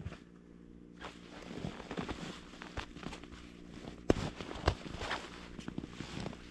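A backpack's straps and fabric rustle.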